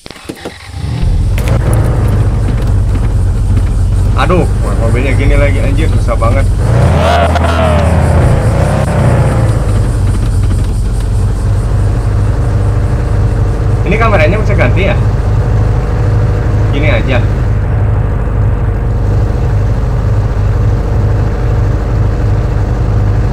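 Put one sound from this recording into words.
A car engine hums steadily as a vehicle drives.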